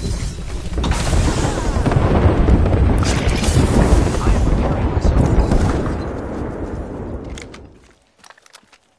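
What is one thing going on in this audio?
A large fire roars loudly nearby.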